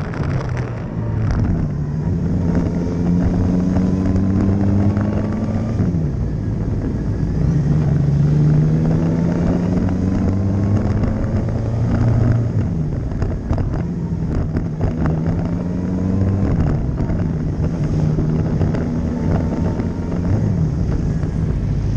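A motorcycle engine revs hard, rising in pitch and dropping sharply with each gear change.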